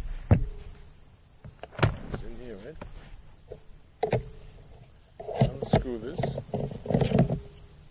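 Metal parts click and knock as a man handles a gun.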